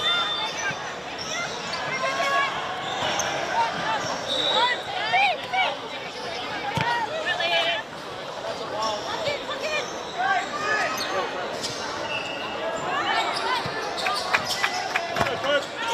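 Young women shout and call out to each other across an open outdoor field.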